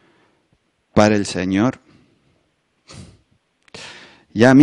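A middle-aged man speaks with animation into a close microphone.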